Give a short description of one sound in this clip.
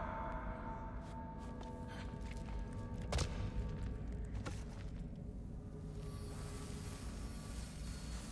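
Footsteps crunch on icy ground.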